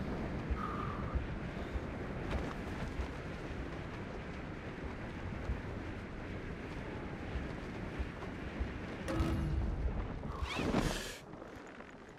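Wind roars steadily past a fast-flying wingsuit flier.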